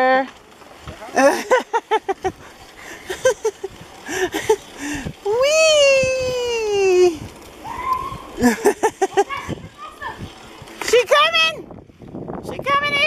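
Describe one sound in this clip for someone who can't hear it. Bicycle tyres roll over a dirt path.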